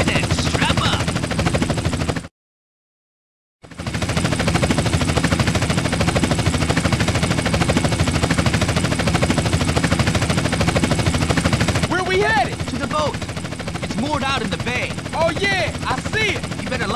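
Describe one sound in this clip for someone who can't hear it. A helicopter's rotor thumps in flight.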